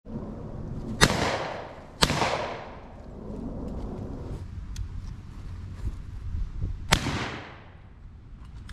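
Shotgun blasts boom outdoors and echo away.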